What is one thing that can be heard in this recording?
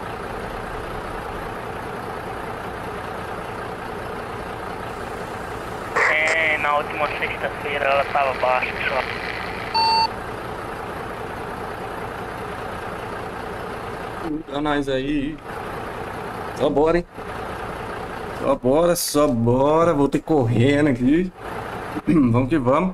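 A truck engine idles steadily.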